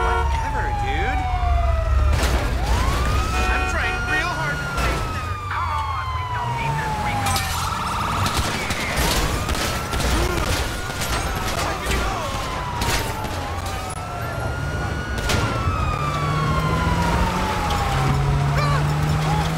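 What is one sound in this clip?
A police siren wails, rising and falling over and over.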